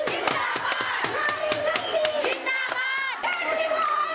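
A woman shouts slogans through a microphone.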